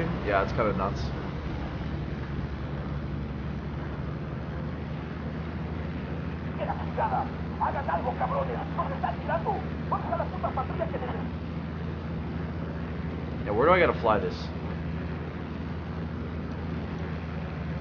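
A small propeller plane engine drones steadily.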